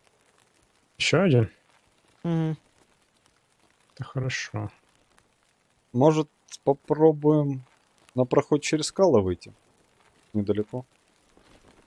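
A man talks into a microphone with animation, in short bursts.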